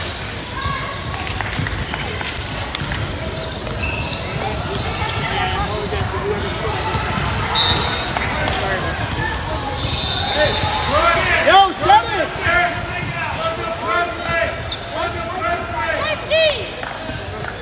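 A crowd of spectators chatters in the background.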